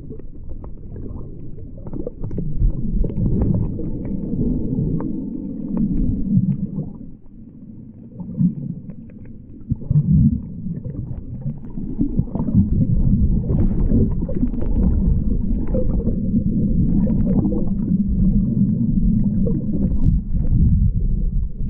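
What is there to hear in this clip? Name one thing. Water swishes and bubbles in a muffled, underwater rumble.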